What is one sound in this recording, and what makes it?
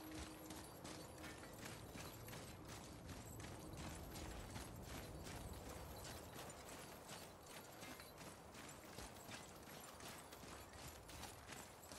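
Heavy footsteps crunch steadily over rocky ground.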